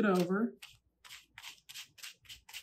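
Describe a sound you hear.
A paintbrush dabs and scrubs on paper.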